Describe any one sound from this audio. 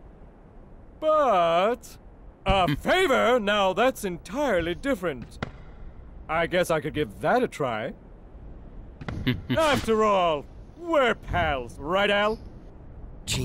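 A man speaks with animation in a loud, playful voice.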